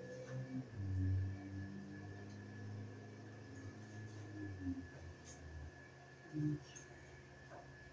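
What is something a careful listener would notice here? A man pulls and handles cable against a wall, with low scraping and rubbing.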